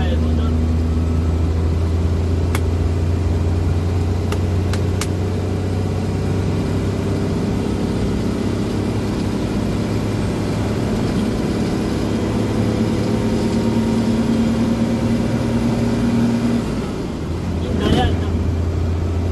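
An engine rumbles steadily.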